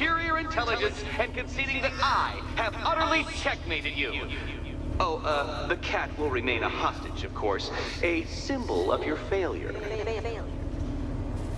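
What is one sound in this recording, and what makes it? A man speaks calmly and with a sly tone, close by.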